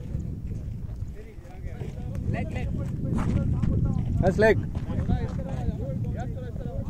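Young men call out and talk in the distance.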